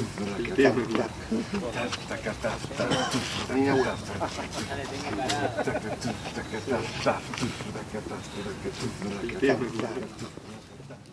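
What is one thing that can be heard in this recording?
Dogs growl and snarl as they play.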